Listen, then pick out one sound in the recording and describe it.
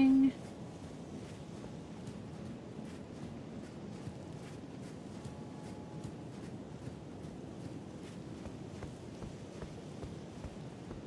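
Footsteps tread quickly across a hard floor.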